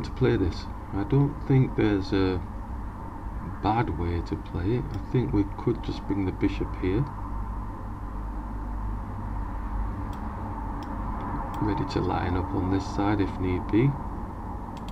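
A man talks calmly into a microphone, in bursts with pauses.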